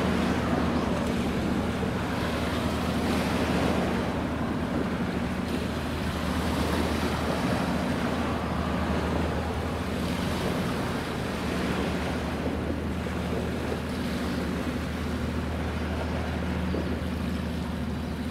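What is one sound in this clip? Wind rushes across the microphone outdoors.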